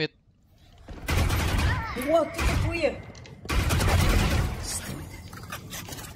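Rifle shots fire in quick bursts.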